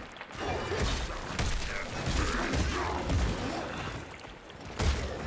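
Thumping impacts hit hard.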